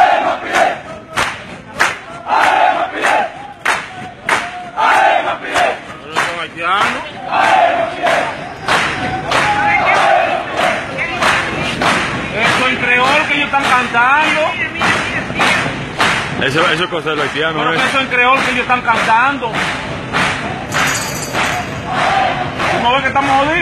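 A crowd of young men chant loudly in unison outdoors.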